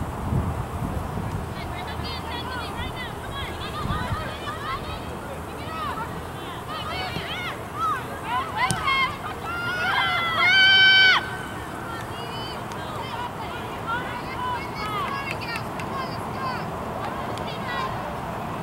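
Young players shout to each other in the distance across an open field.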